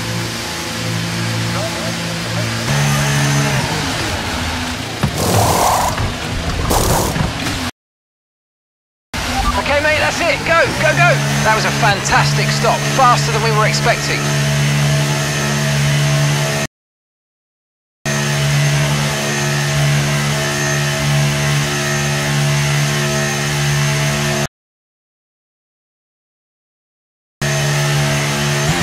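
A race car engine hums steadily at low speed.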